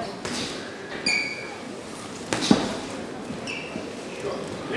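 Boxing shoes squeak and shuffle on the canvas.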